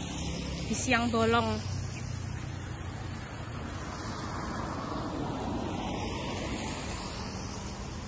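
A car hisses past on a wet road nearby.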